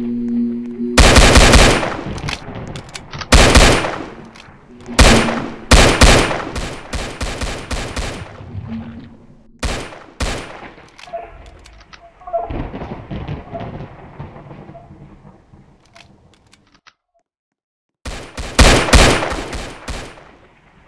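Pistol shots ring out loudly in quick bursts.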